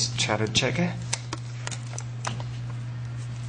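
A small card clicks into a slot.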